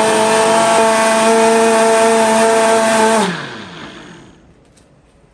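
A blender whirs loudly at high speed, then winds down and stops.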